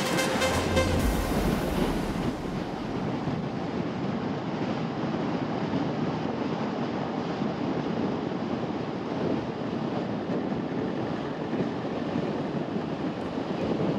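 Wind rumbles and buffets steadily, as outdoors while moving.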